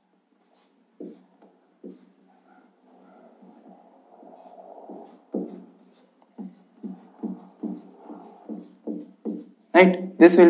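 A marker squeaks against a whiteboard in short strokes.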